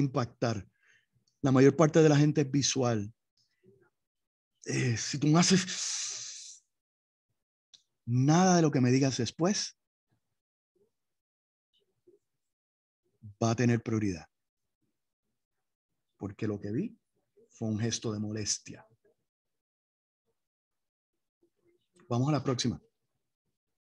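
An elderly man speaks calmly in bursts with pauses, heard through an online call.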